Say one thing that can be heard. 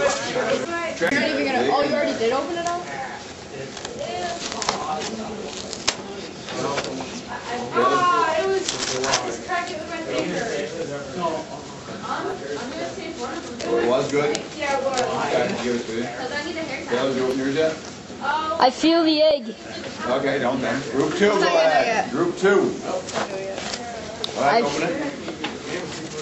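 Cardboard rustles and scrapes as hands handle it.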